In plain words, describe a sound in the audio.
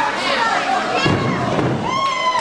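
A wrestler is slammed onto a wrestling ring mat with a heavy thud.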